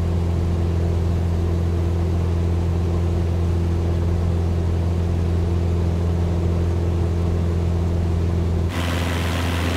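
A small propeller plane's engine drones loudly from inside the cabin.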